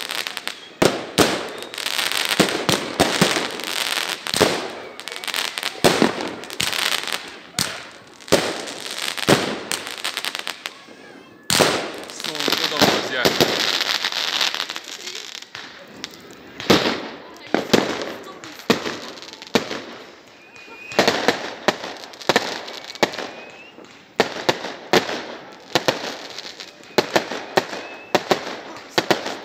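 Fireworks bang and crackle overhead, one burst after another.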